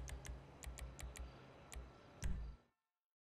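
Menu selection clicks tick several times.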